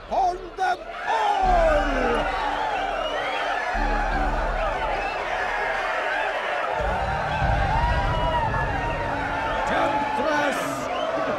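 A large crowd of men cheers and shouts together.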